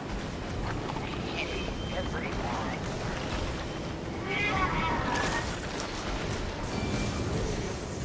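A flamethrower roars in bursts.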